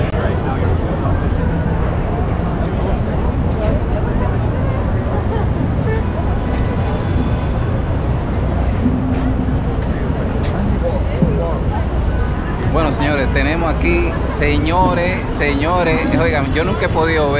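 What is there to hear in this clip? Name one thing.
A busy crowd murmurs outdoors in a city street.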